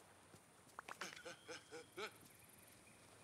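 Short bright chimes ring out in a quick run.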